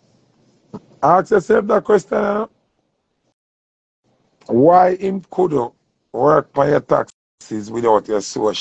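A man speaks close to the microphone in a relaxed, drawling voice.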